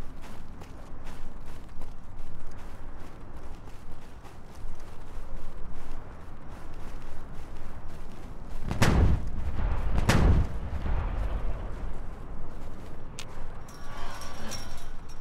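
Footsteps crunch through snow at a steady pace.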